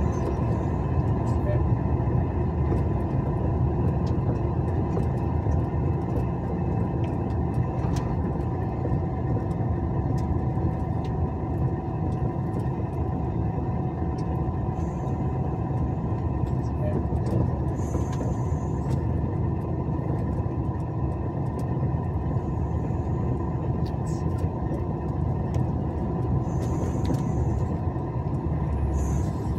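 A vehicle engine drones steadily while driving on a highway.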